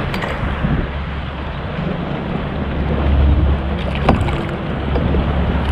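A fish splashes and thrashes at the water's surface.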